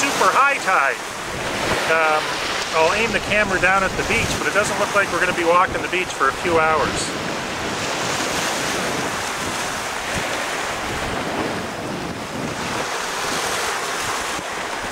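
Waves wash against the shore.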